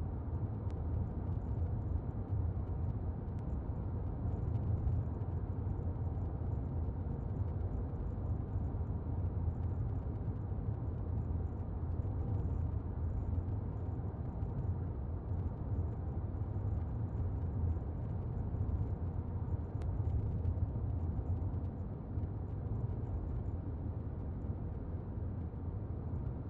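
Tyres roll on the road inside a moving car.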